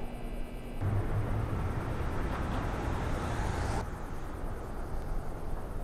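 Footsteps walk slowly on pavement.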